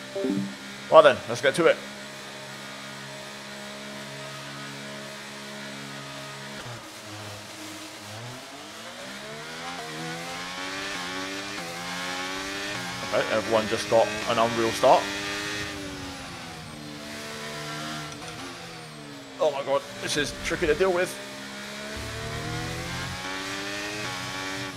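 A racing car engine whines and revs up and down through gear changes.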